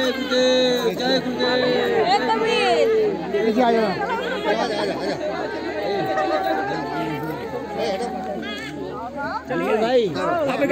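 A crowd of women and men chatter all around.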